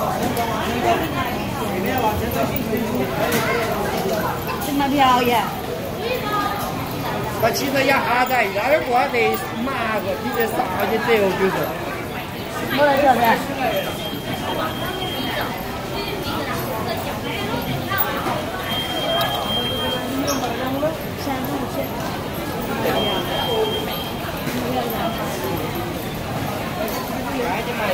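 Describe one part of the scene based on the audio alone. A crowd of men and women chatters loudly nearby in a large echoing hall.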